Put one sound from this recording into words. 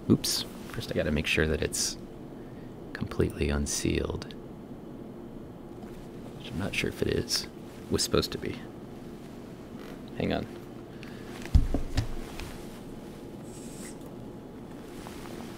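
A hand bumps and rubs against a plastic machine casing.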